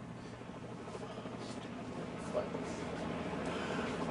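A man speaks quietly.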